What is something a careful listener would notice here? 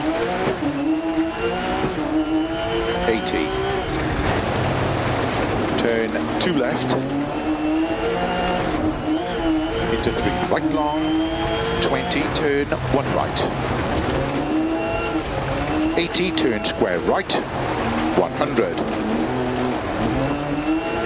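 A rally car engine revs hard, rising and falling with each gear change.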